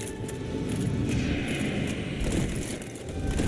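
A magical beam whooshes past.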